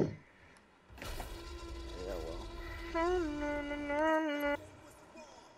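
Fireworks pop and crackle.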